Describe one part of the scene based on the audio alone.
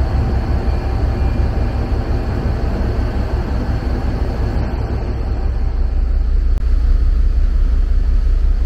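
A boat engine rumbles steadily.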